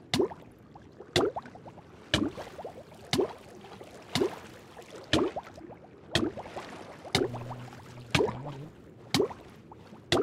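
Water flows and splashes as a game character swims.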